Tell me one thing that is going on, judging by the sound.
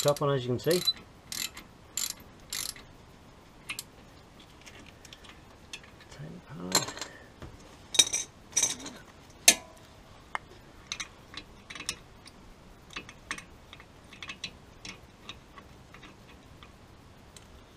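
Metal tools clink and knock against car brake parts.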